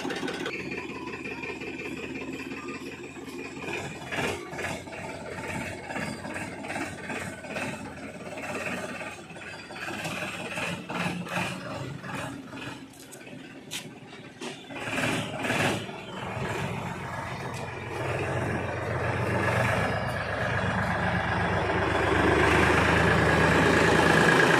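A tractor engine chugs steadily and grows louder as it comes close.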